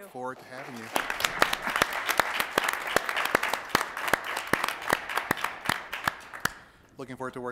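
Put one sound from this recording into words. A small group of people applauds.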